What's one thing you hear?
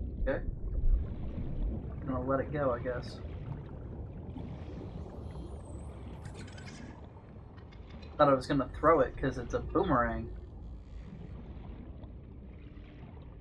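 Water gurgles and rumbles softly around a swimmer underwater.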